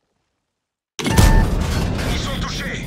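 A shell bursts with a sharp explosion.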